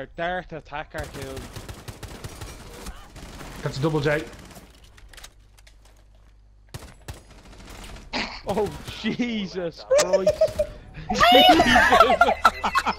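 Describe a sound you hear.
Rapid gunshots crack nearby.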